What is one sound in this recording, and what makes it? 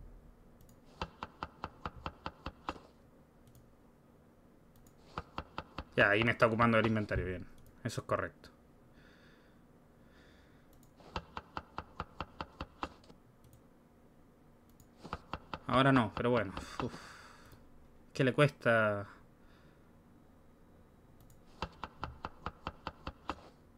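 A game plays quick, repeated ticking sound effects in short bursts.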